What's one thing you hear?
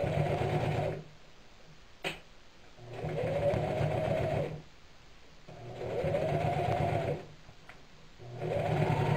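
An electric sewing machine stitches through burlap in short bursts.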